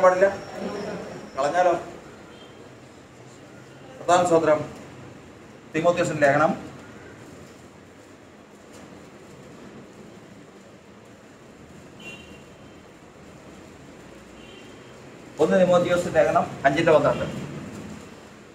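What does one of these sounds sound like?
An older man speaks calmly in short bursts, close by, in a room with a slight echo.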